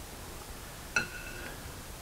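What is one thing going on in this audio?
A metal gauge clicks against a steel chuck.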